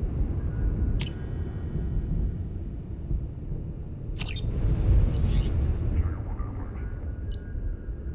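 Soft electronic clicks sound as menu options are selected.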